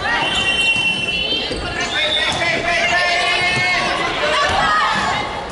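Young women call out to each other in a large echoing hall.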